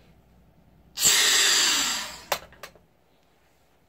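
Air hisses loudly as it rushes back into a container.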